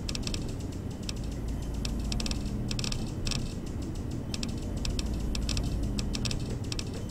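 Menu clicks tick rapidly as items are scrolled through.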